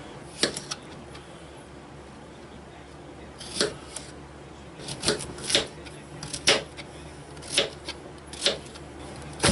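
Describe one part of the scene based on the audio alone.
A knife taps and chops on a cutting board.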